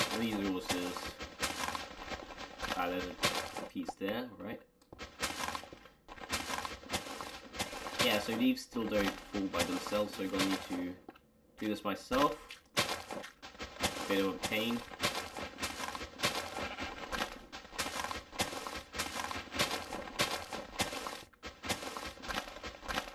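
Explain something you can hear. Leaves crunch and rustle as they are broken again and again.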